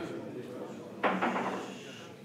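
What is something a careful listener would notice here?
A cue strikes a billiard ball with a sharp clack.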